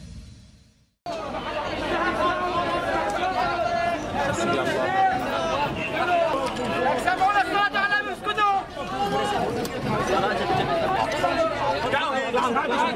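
Many men shout and call out loudly outdoors.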